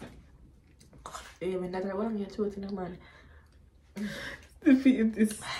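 A second young woman laughs close by.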